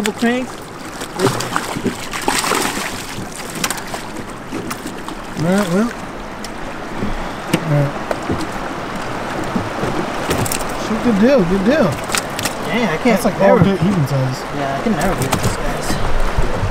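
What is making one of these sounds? River water rushes steadily past a small boat outdoors.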